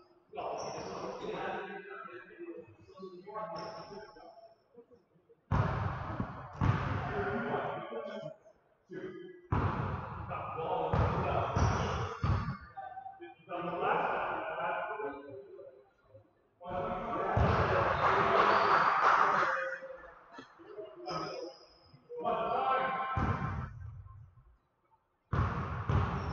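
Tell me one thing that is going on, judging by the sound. Men talk and call out in a large echoing gym.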